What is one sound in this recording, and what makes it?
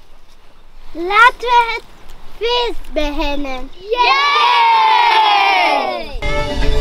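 Children sing together outdoors.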